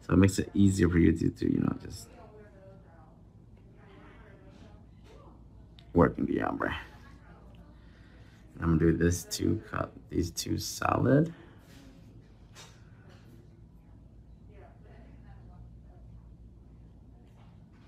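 A brush strokes softly on a fingernail.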